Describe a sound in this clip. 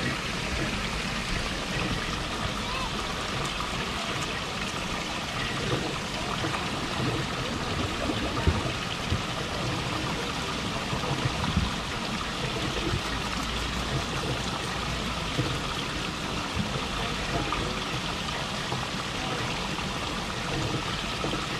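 A beaver crunches and gnaws on food close up.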